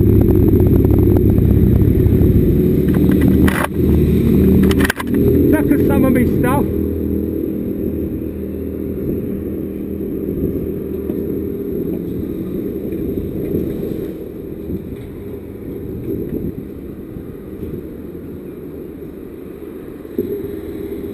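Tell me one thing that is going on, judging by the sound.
Another motorcycle engine rumbles nearby.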